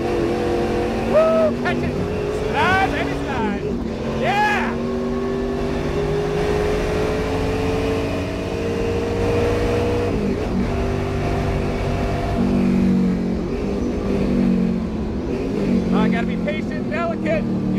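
Tyres squeal sharply through the corners.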